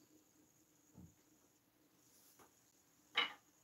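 Wooden objects knock against each other.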